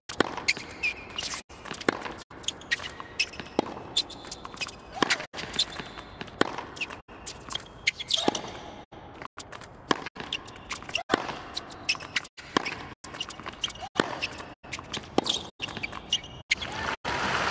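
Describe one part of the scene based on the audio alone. A tennis ball is struck back and forth with rackets in sharp, regular pops.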